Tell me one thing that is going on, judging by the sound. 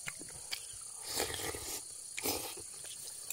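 A boy chews and slurps food up close.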